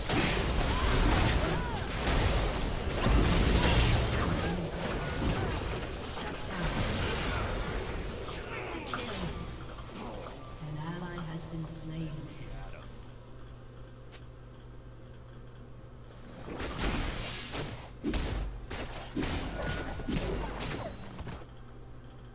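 Magic spells blast and crackle in a fast battle.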